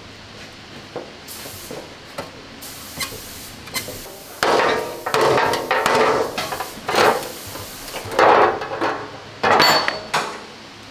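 A hammer bangs on sheet metal in sharp, ringing blows.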